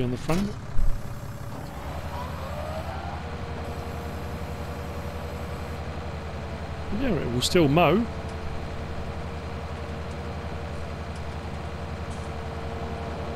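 A mower whirs as it cuts grass.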